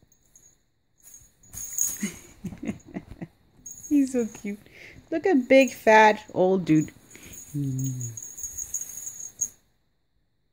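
A foil tinsel cat toy rustles and crinkles.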